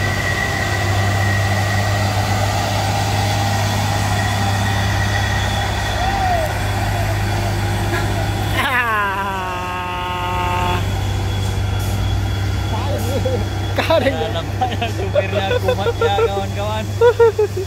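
A heavy truck engine rumbles steadily as the truck drives slowly past and away.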